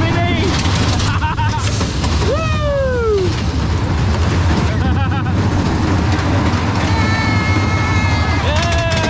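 Riders scream and whoop with excitement.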